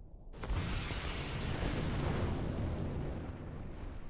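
Fire whooshes and roars in a burst.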